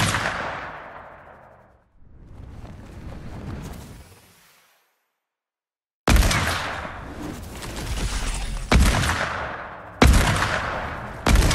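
A launch pad whooshes loudly again and again, each whoosh fading away.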